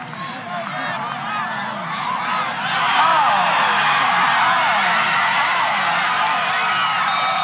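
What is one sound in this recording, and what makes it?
A large crowd cheers and shouts outdoors, swelling louder.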